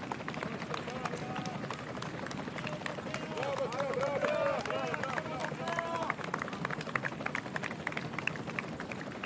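A crowd of spectators claps along the road.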